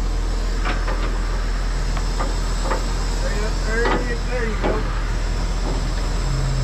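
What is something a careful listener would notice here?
A hydraulic tow bed whines as it tilts.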